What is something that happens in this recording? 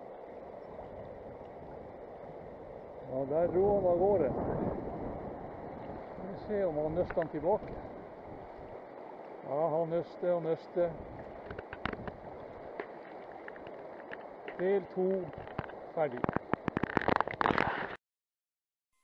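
A river rushes steadily over stones.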